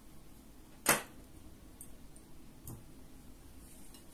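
An egg clinks softly into a glass bowl.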